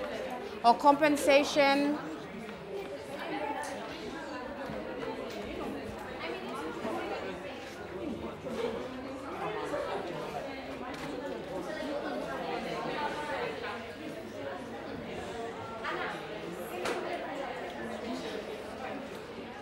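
Teenagers chatter and murmur together in a room.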